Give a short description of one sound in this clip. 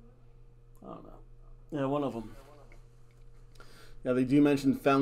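A middle-aged man talks calmly and close up into a microphone.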